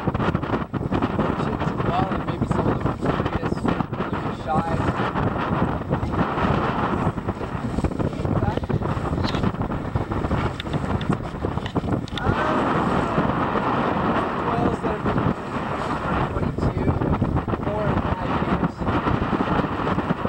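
Strong wind roars and buffets outdoors.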